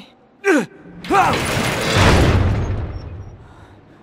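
A heavy gate crashes down with a loud rumble.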